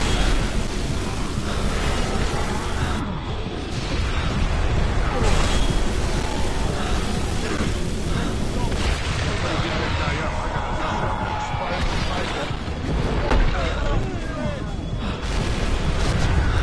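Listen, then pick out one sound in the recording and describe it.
Electric beams crackle and buzz loudly.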